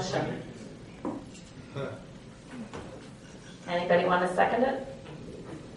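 A woman speaks quietly close by.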